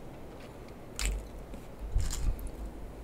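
Foil wrapping crinkles as a hand handles a food packet.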